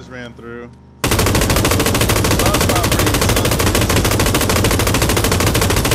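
A light machine gun fires in a long, rapid burst.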